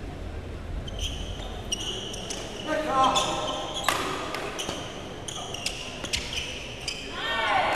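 Rackets strike a shuttlecock in a fast rally.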